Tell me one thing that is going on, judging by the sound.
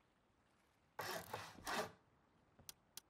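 Wood knocks and rustles as a thatched wall is put in place.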